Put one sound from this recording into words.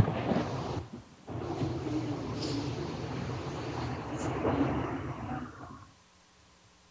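An elderly man speaks calmly into a microphone, heard over loudspeakers in a large hall.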